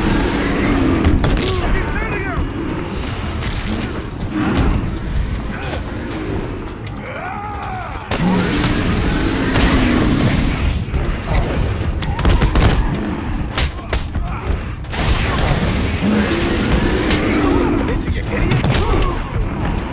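Punches and kicks land with heavy thuds in a brawl.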